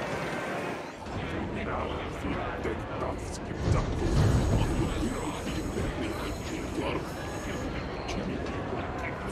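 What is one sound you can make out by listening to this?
A train car rumbles steadily as it rolls along.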